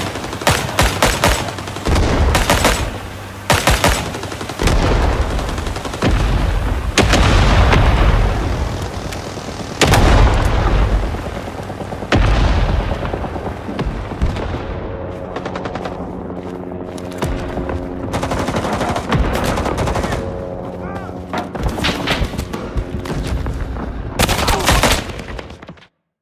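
Rifle shots crack loudly in quick bursts, each one echoing.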